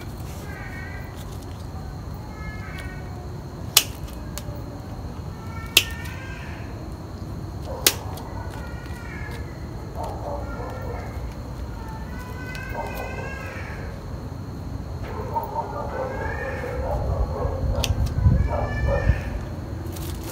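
Pruning shears snip through roots with sharp clicks.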